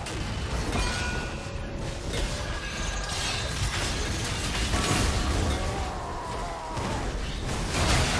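Weapons clash and strike in rapid bursts.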